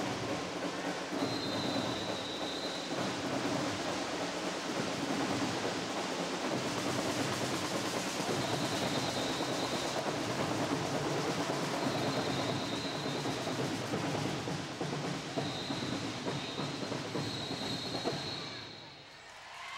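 A large crowd chatters and cheers in a big echoing hall.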